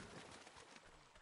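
Footsteps run through shallow water, splashing.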